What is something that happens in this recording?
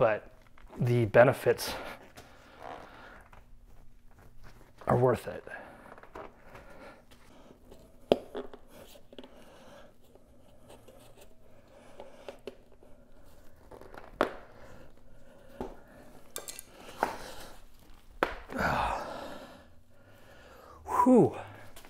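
A rubber tyre squeaks and rubs as hands work it onto a wheel rim.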